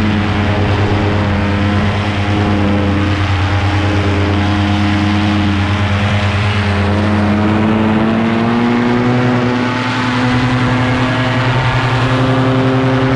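Wind rushes past in the open air.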